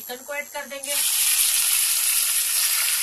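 Meat sizzles loudly in hot oil.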